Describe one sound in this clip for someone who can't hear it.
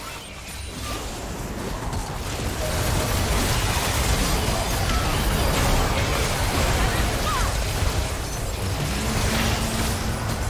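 Video game spell blasts and impacts crash in a busy fight.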